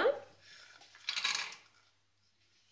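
Cashew nuts clatter into a metal pot.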